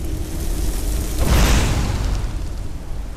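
A burst of fire roars loudly.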